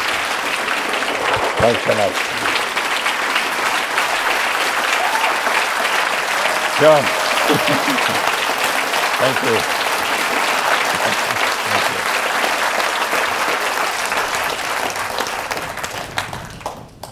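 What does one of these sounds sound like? A large audience applauds loudly in a big hall.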